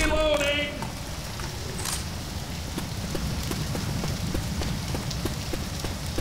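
A fire crackles nearby.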